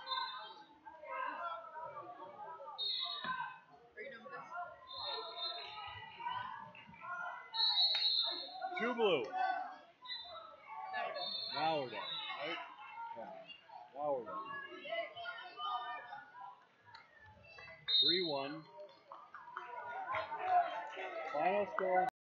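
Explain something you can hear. A crowd chatters in the background of an echoing gym.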